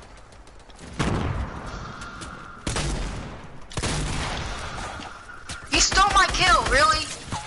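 Gunshots fire in loud, sudden bursts.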